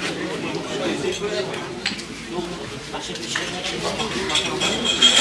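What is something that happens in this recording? A crowd of adult men and women talk among themselves.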